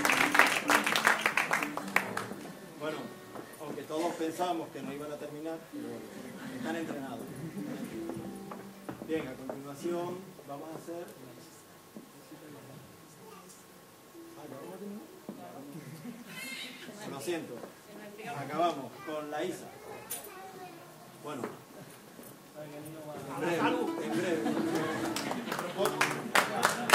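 Plucked strings play a lively tune.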